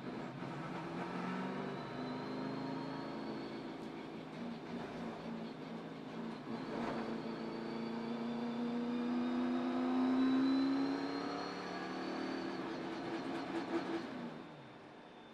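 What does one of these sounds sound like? Race car engines roar loudly at high speed, their pitch slowly rising and falling.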